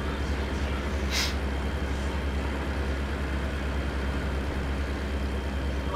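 A passing truck rushes by close alongside.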